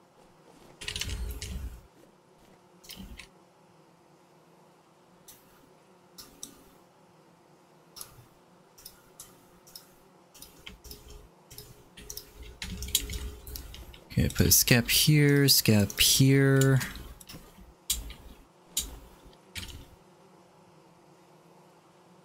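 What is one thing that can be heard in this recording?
Short soft clicks sound now and then.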